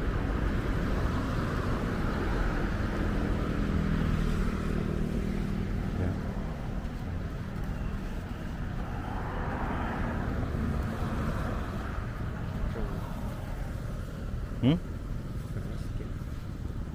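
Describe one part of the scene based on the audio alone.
Running footsteps patter on a paved path.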